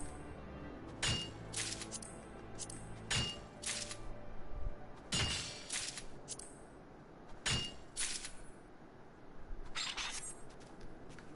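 Pickaxe blows strike rock in sharp metallic clinks, each followed by a short chime.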